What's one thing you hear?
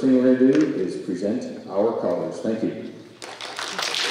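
A middle-aged man speaks calmly into a microphone in a large hall.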